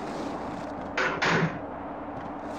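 A heavy metal door clanks open.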